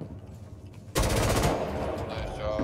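A gun fires a short, loud burst.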